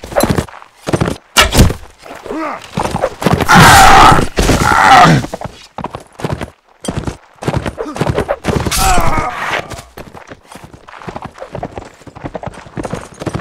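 A horse gallops with thudding hooves.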